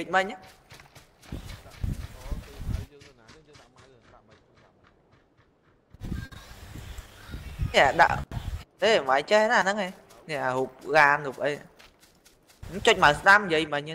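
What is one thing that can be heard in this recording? Footsteps run through grass.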